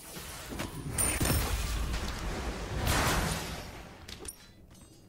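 Bursts of magic blasts and whooshes ring out from a video game.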